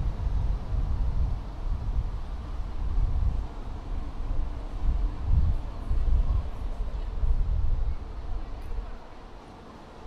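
Traffic hums along a city street outdoors.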